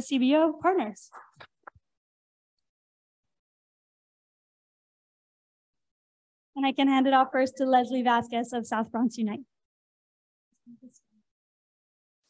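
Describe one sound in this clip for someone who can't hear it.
A woman speaks calmly through an online call, with pauses.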